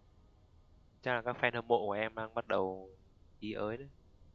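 A young man talks calmly into a headset microphone.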